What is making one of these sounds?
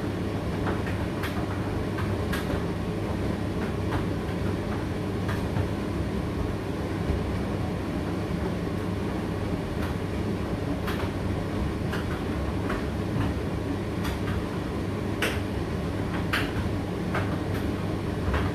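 A condenser tumble dryer hums and rumbles as it runs.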